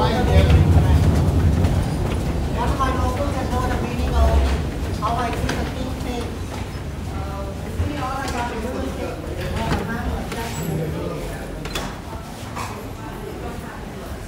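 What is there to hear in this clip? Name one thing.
Footsteps tap on a hard floor in an echoing hall.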